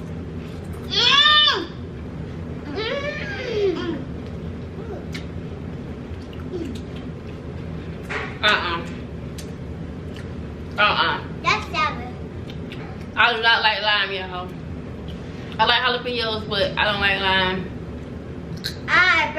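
A little girl speaks in a high, lively voice.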